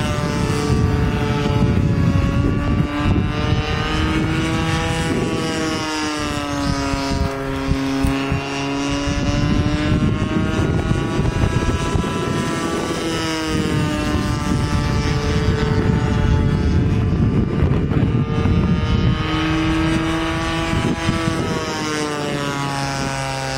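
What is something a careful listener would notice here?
A small model airplane engine buzzes overhead, its pitch rising and falling as it swoops.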